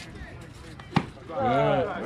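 A bat sharply strikes a ball.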